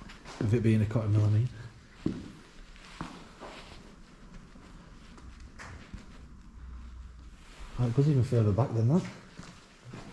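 A man speaks quietly, close by.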